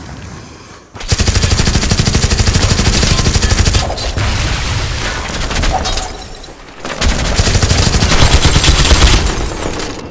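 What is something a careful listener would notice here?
A gun fires rapid, loud bursts.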